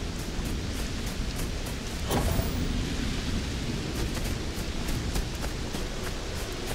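Footsteps crunch steadily over dry ground.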